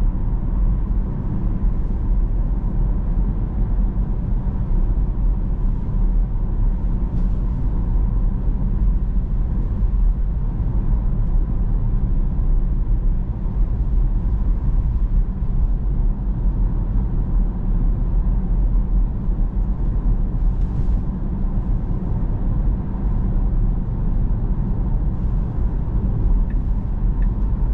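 A car drives steadily along a road, with a low rumble of tyres and engine heard from inside.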